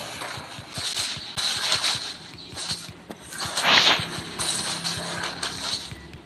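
A fighter strikes a large creature with repeated heavy blows and magic bursts.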